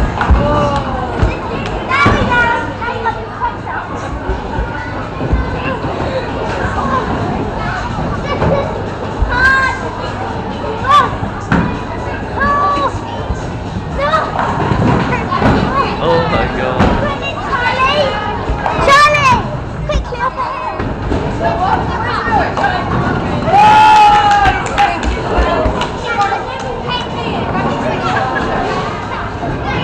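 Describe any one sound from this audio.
Several women and children chatter and call out nearby, echoing in a large hall.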